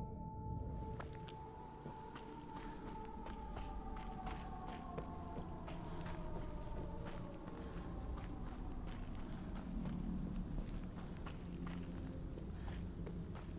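Footsteps crunch slowly over a dirt path.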